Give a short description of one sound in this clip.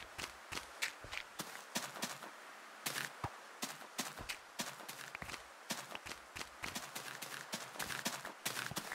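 Rain falls in a video game.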